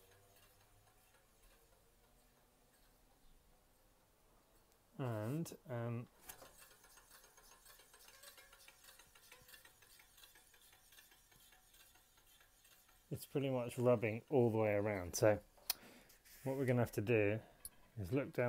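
A bicycle wheel spins with a soft whir.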